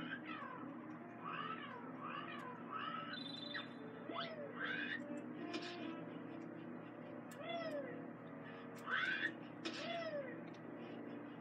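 Cheerful electronic game music plays through a television speaker.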